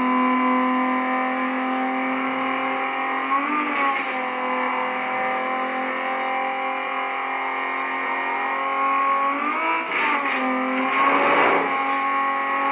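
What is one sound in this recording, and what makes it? A racing car engine roars steadily at high revs, dipping briefly as gears shift.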